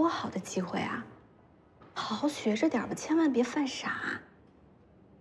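A young woman speaks with concern, close by.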